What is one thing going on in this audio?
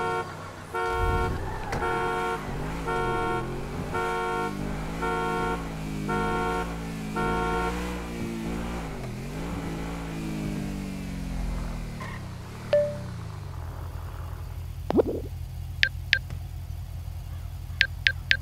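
A car engine starts, revs and runs as the car drives off.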